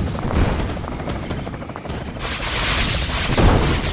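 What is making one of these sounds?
Heavy guns fire in a steady series of thuds.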